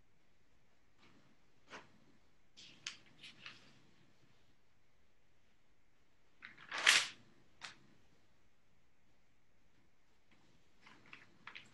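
A crumbly block scrapes and crackles in a man's hands at close range.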